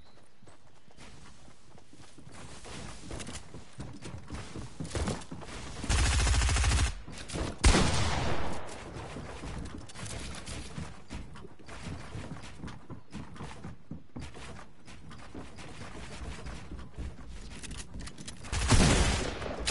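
Wooden panels clack into place in quick bursts.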